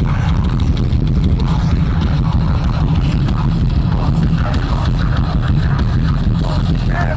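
A rock band plays loudly through a large outdoor sound system, with heavy bass and pounding drums.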